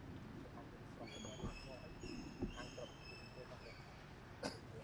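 A baby monkey squeaks in short high chirps.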